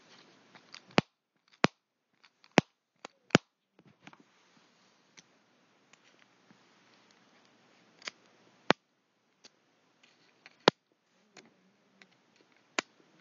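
Fingers tap and knock on the microphone up close.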